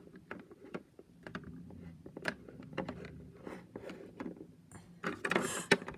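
A small plastic door swings open with a light clack.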